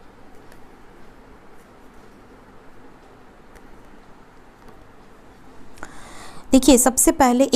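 Playing cards rustle softly as they are spread by hand.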